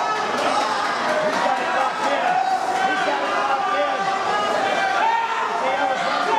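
A crowd of people chatter and shout in a large echoing hall.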